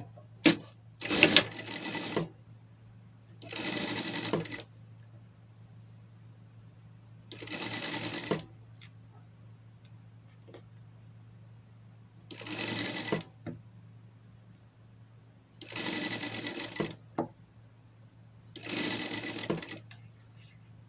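A sewing machine stitches in short, fast bursts.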